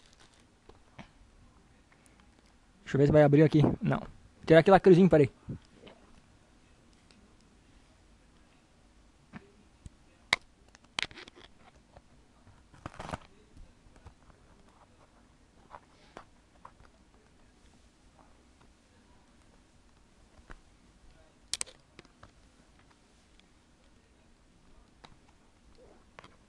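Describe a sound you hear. A hard plastic case taps and clicks as hands handle it.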